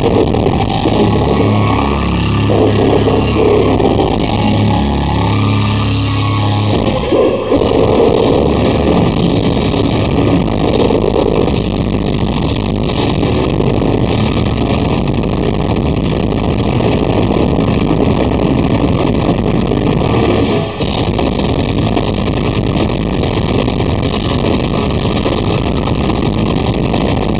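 Drums pound rapidly.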